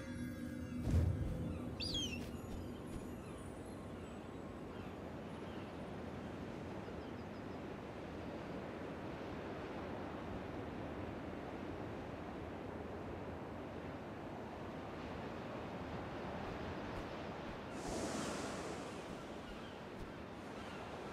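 Wind rushes steadily past as a figure glides through the air.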